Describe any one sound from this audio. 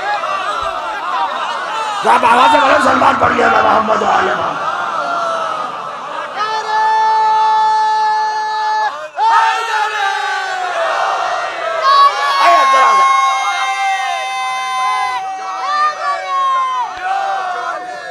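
A man chants and speaks with passion into a microphone, echoing through loudspeakers.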